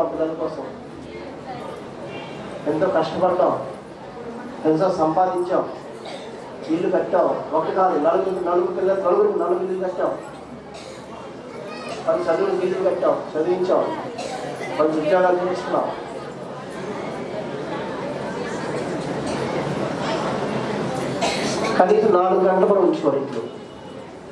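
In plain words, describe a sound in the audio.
A man speaks animatedly through a microphone in a reverberant hall.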